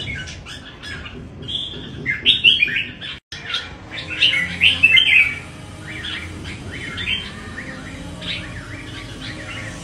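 A caged songbird chirps and warbles loudly, close by.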